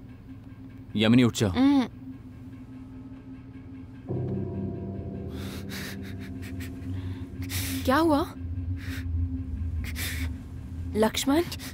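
A young woman speaks softly and anxiously, close by.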